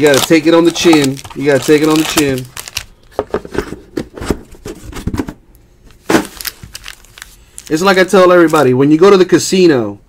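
A plastic card pack crinkles as hands handle it.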